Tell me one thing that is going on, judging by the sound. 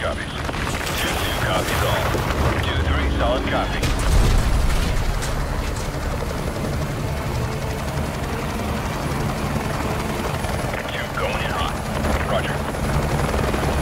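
Helicopter rotors roar and thump steadily nearby.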